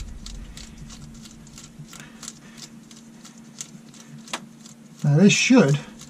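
Small metal parts click and tap softly as they are handled.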